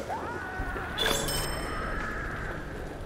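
A bright, short chime rings.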